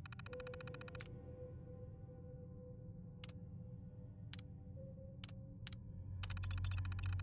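Sharp clicks sound as menu selections are made.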